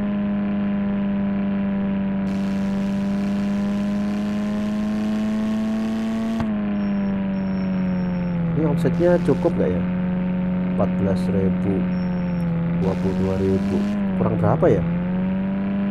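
A van engine hums steadily as it drives, its pitch dipping slightly now and then.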